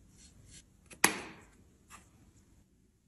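A lid snaps shut on a plastic jar.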